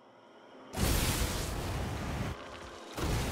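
A loud whoosh of a teleport effect rushes in.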